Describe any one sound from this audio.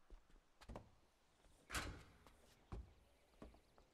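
Heavy thuds sound as a man climbs onto a truck.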